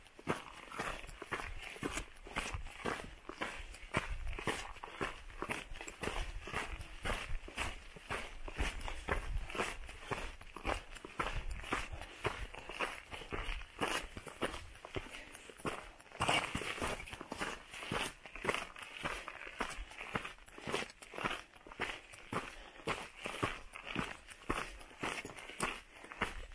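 Boots crunch steadily on a loose gravel trail.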